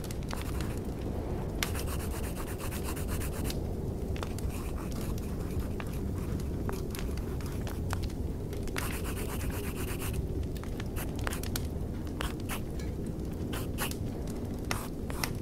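Fires crackle and pop steadily.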